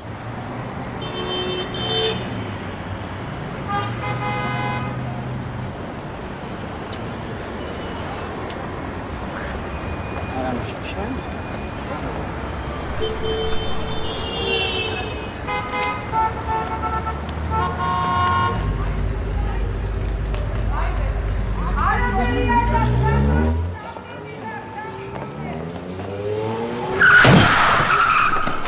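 Traffic drives along a busy street.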